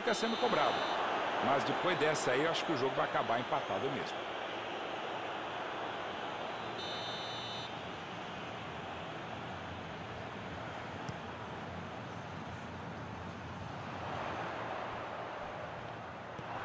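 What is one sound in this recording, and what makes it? A stadium crowd roars and murmurs.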